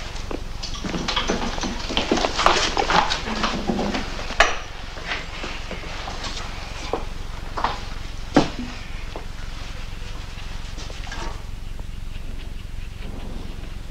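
Metal instruments clink on a tray.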